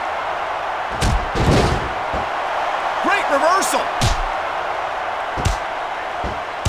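Heavy bodies slam onto a mat with loud thuds.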